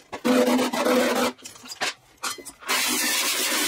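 A man taps metal with a hammer.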